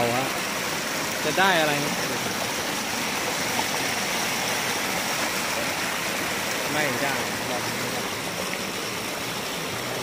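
Water splashes as a net is scooped through a stream.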